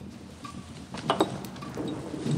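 A glass clinks.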